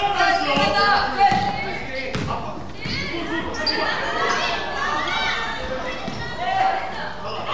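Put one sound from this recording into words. A crowd of spectators chatters and calls out in a large echoing hall.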